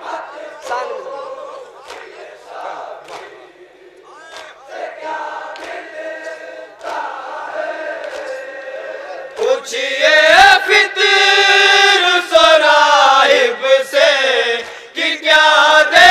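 A young man chants a lament through a microphone.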